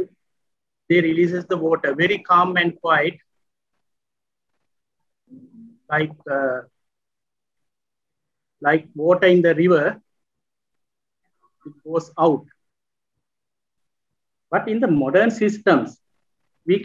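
A man speaks calmly in bursts, heard through an online call.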